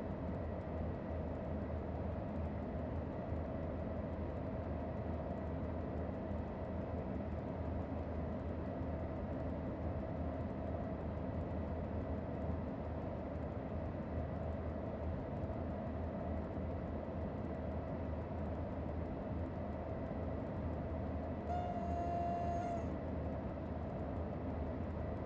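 A locomotive engine rumbles steadily while the train runs along the track.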